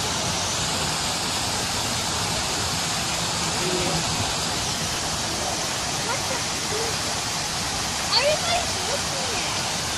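A fountain splashes steadily outdoors.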